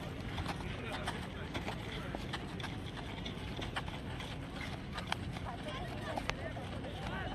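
Footsteps scuff and patter on dry dirt.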